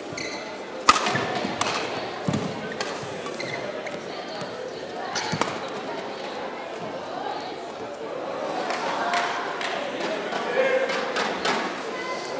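A shuttlecock is struck sharply with a racket, back and forth.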